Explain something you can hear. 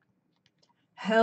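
A woman speaks clearly close to a microphone.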